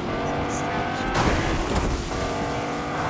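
A car crashes through bushes with a burst of rustling and cracking.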